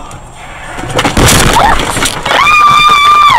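A car crashes and tumbles over with loud bangs.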